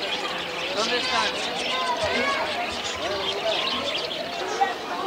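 A man and a woman talk nearby.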